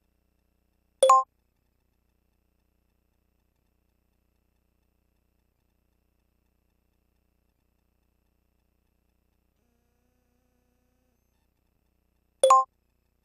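A short electronic menu chime sounds.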